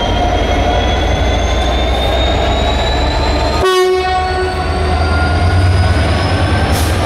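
A diesel locomotive engine rumbles loudly as it passes close by.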